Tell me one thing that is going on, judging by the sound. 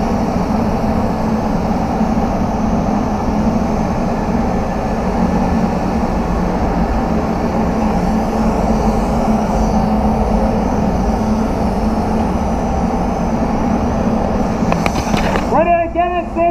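A spray gun hisses steadily.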